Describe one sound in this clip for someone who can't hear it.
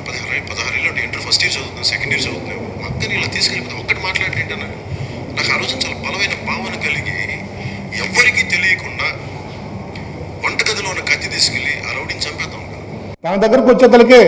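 A man speaks loudly into a microphone.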